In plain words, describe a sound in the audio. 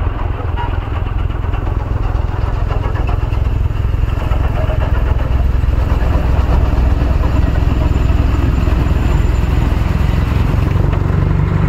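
Snow sprays and whooshes out of a snow blower's chute.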